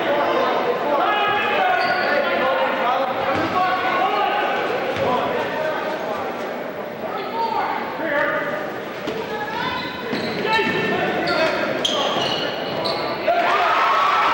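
A crowd of spectators chatters and calls out in a large echoing gym.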